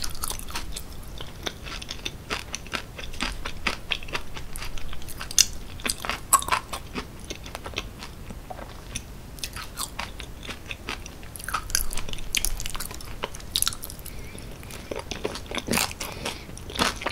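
A woman chews soft food with wet, sticky mouth sounds close to a microphone.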